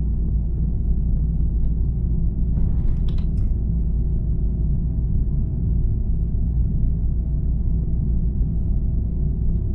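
A bus engine hums with a deep, steady rumble.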